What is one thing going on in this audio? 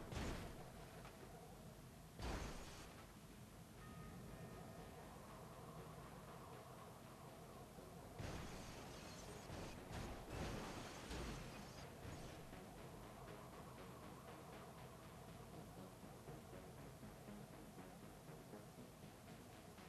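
Car engines rumble and rev steadily.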